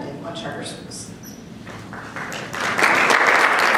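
A woman speaks calmly into a microphone over a loudspeaker in a large room.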